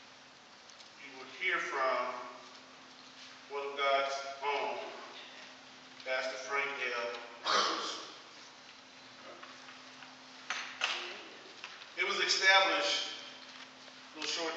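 A man preaches through a microphone in bursts, his voice echoing in a large hall.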